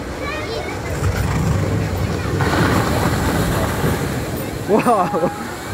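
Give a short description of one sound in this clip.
A boat rushes down a water slide and splashes into a pool.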